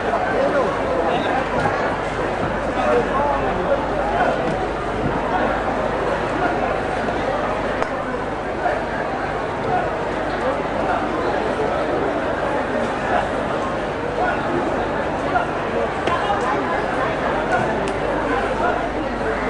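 A large crowd murmurs and chatters in a big echoing tent.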